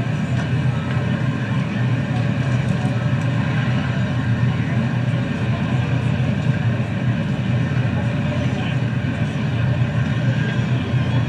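A jet engine idles with a steady, loud roar and whine.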